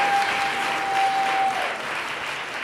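A group of male singers holds a final sung note and stops.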